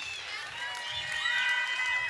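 A crowd applauds outdoors with scattered clapping.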